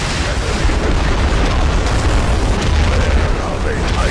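Explosions boom and rumble in battle.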